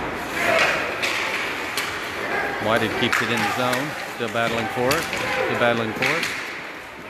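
Hockey sticks clack sharply against a puck.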